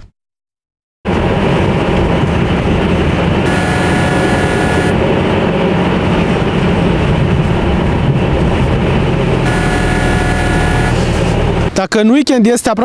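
A car engine and tyres rumble steadily from inside a moving car.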